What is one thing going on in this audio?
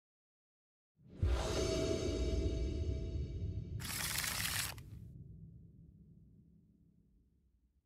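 A loud rumbling swoosh swells up and slowly fades away.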